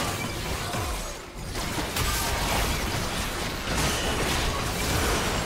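Magic spells whoosh, crackle and burst in a busy battle.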